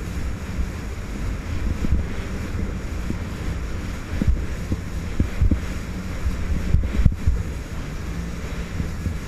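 Water sprays and splashes against the hull as the jet ski bounces over waves.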